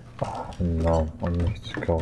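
A button is pressed with a click.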